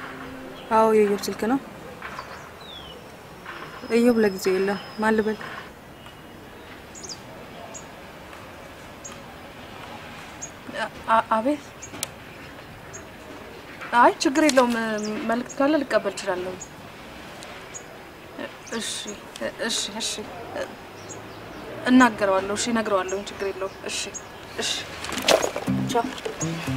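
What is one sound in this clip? A young woman speaks quietly into a phone, close by.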